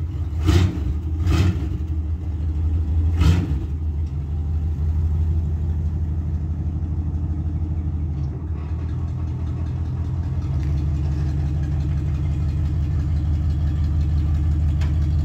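A truck's engine rumbles deeply and idles unevenly.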